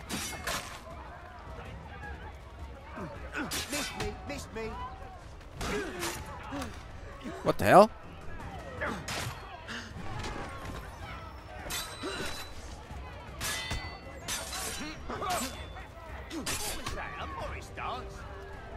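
Men grunt and cry out while fighting.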